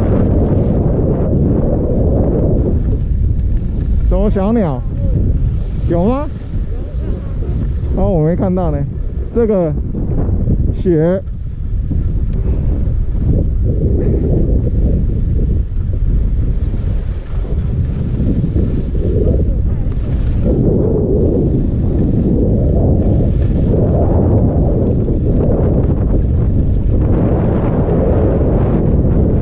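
Skis swish and hiss through deep soft snow.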